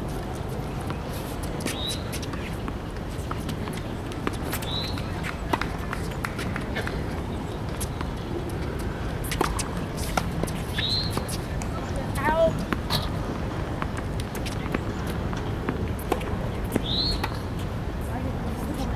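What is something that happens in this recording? Tennis balls are struck with rackets in a quick rally.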